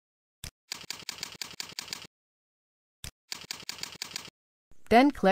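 Keys clatter quickly on a keyboard.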